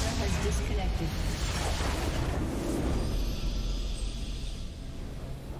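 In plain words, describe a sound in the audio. Magic blasts and explosions crackle and boom in a fight.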